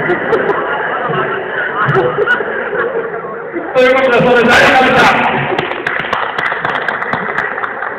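A group of young men chat and laugh in a large echoing hall.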